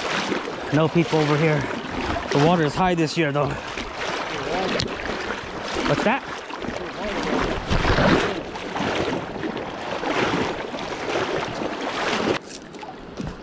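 Water rushes and splashes close by, outdoors.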